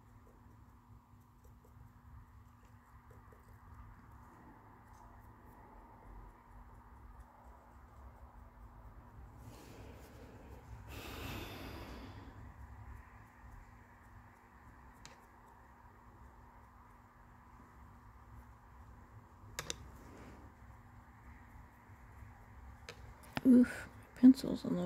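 A pencil scratches softly across a surface.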